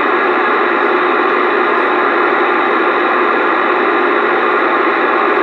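Loud, steady static hisses from a radio speaker.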